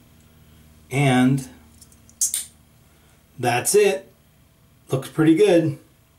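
A metal safety razor clicks softly as its head is twisted.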